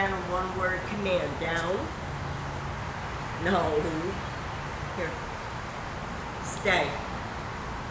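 A woman speaks nearby in a high, sing-song voice.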